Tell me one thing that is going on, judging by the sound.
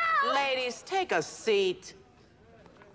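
A woman speaks sternly.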